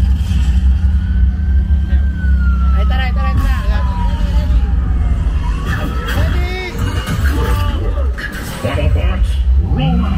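A film soundtrack rumbles and booms loudly through loudspeakers in a large hall.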